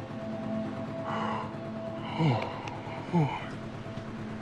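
A man yawns loudly.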